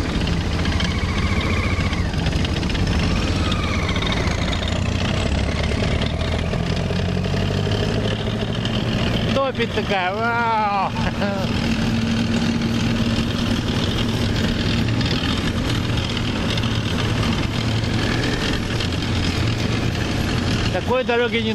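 A motorcycle engine idles with a steady low rumble.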